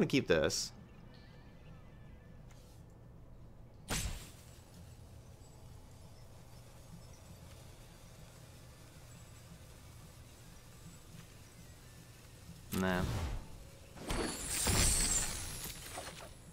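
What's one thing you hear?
Short whooshing and chiming game sound effects play.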